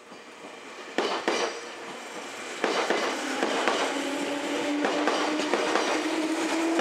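A train rumbles past close by, its wheels clattering over the rail joints.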